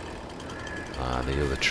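A chainsaw engine revs loudly.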